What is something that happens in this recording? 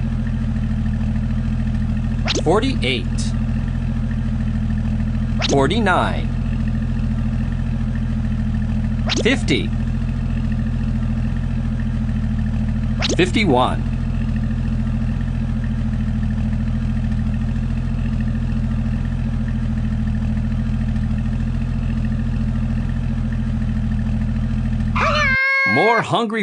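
A cartoon truck engine hums steadily.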